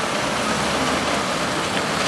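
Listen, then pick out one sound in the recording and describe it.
A truck drives past nearby.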